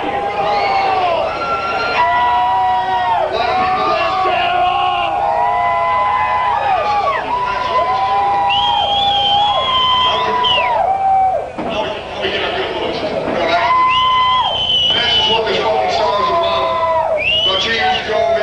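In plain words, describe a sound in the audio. A live band plays loud music in a large echoing hall.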